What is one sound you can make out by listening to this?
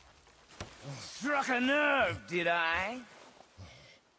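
A man speaks in a deep, gruff voice.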